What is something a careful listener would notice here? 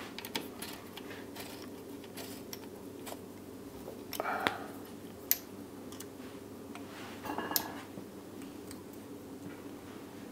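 Small metal parts click and tick as a bow is adjusted by hand.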